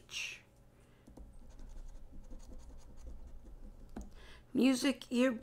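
A coin scrapes across a scratch card.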